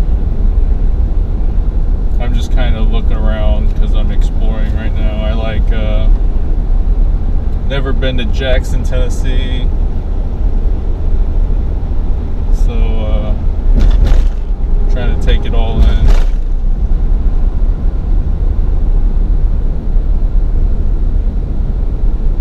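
A car's engine and tyres rumble steadily from inside the car.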